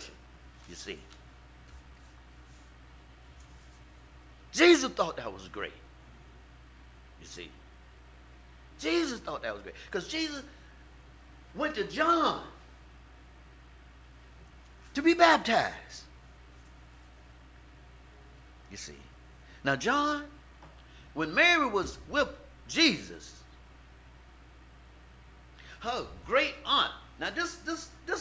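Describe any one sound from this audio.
A middle-aged man preaches into a microphone in short, emphatic bursts with long pauses between.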